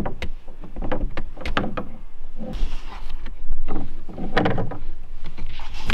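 Water splashes and drips close by.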